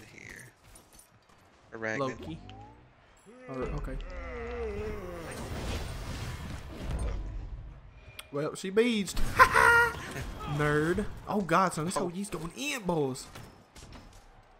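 Heavy blows land in a fast fight, with sharp hits and whooshes.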